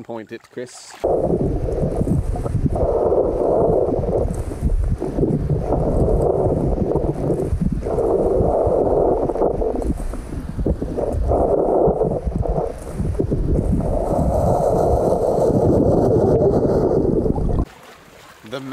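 Muffled underwater rumbling and churning comes as sand is dug up by hand.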